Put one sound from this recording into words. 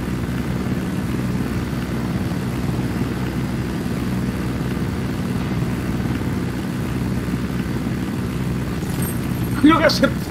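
A helicopter's rotor drones steadily and low.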